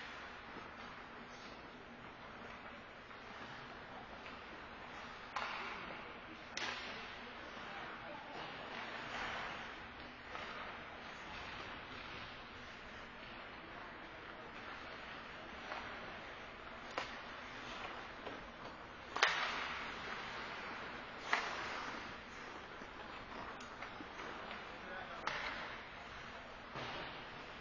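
Skate blades scrape and swish across the ice.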